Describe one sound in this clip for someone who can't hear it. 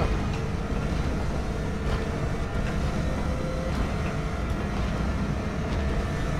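A hovering craft's engine hums and whooshes steadily.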